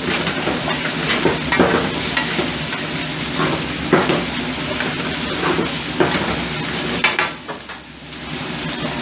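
Food sizzles and hisses in a hot wok.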